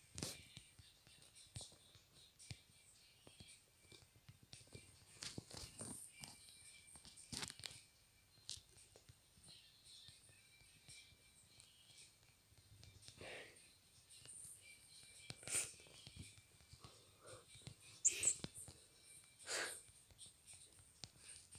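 Fingers tap quickly on a phone's touchscreen keyboard.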